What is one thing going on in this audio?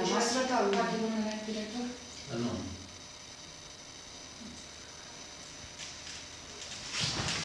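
A middle-aged woman speaks calmly into a microphone nearby.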